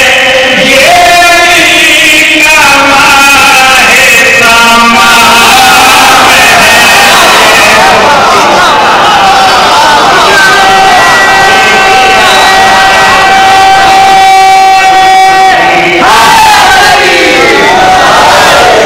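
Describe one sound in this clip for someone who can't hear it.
A man sings loudly and with passion through a microphone in an echoing hall.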